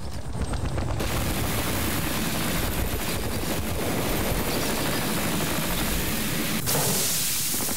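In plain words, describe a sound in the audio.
A repair tool crackles and sizzles with sparks.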